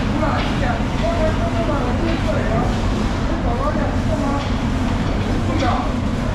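A knife slices through raw fish.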